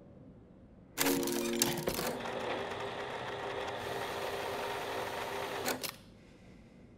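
A jukebox mechanism whirs loudly and steadily, then stops.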